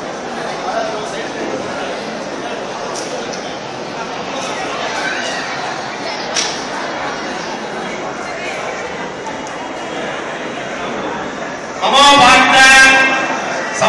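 A large crowd of men and women murmurs and chatters in an echoing hall.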